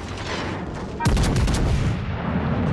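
A shell explodes with a loud blast and splashes into water.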